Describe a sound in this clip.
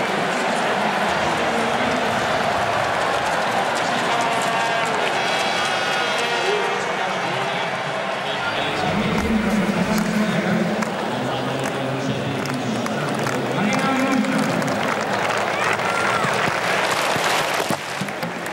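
A large stadium crowd murmurs and cheers steadily outdoors.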